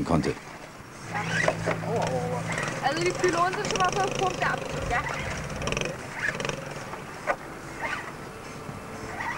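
A small electric motor whines as a toy car crawls over rocks.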